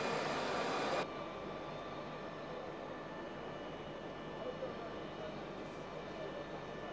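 A jet airliner's engines roar steadily as it taxis nearby.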